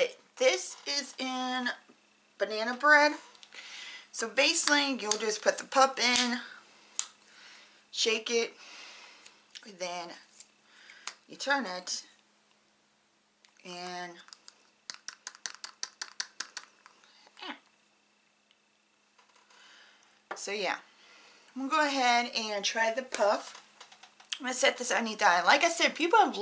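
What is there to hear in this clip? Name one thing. A young woman talks calmly and close to a microphone, with pauses.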